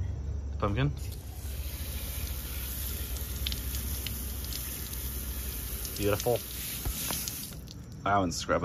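A hose sprays water onto pavement with a steady hiss.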